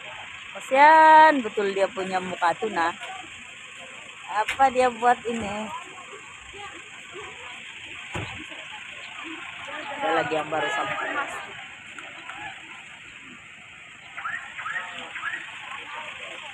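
Several adults talk nearby outdoors in short bursts.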